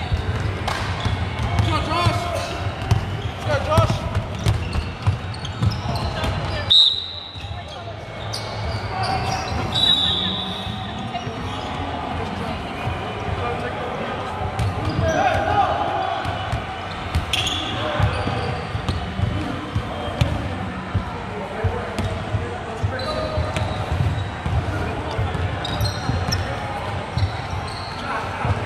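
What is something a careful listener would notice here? A basketball bounces on a hard floor, echoing.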